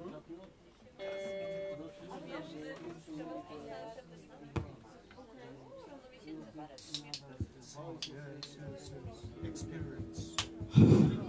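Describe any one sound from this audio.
Acoustic guitar strings are plucked and strummed.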